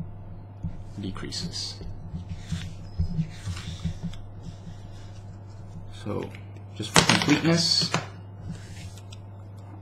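Paper rustles and shifts.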